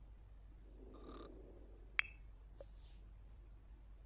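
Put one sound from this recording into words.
A short chime sounds as a notice pops up.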